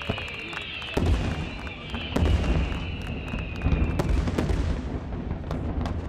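Firework aerial shells burst with deep booms far off.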